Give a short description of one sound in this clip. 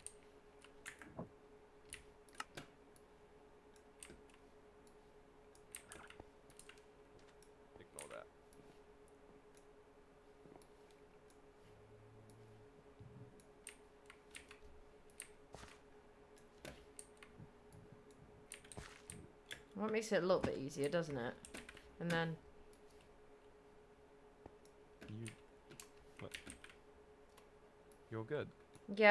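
Blocks crack and break with short clicks as they are mined.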